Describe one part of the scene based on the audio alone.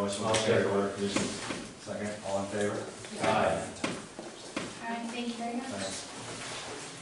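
A young woman speaks calmly to a room, heard through a microphone.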